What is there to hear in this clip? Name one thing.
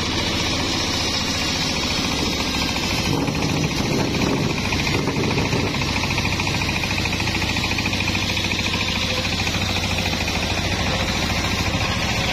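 A circular saw blade whirs loudly and steadily.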